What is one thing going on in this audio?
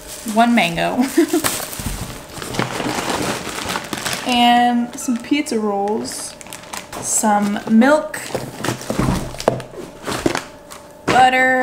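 Plastic bags crinkle and rustle.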